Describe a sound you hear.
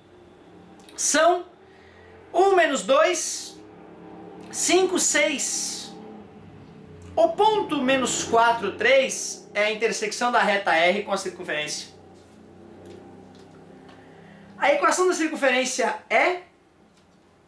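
A middle-aged man speaks calmly and close by, in short bursts with pauses.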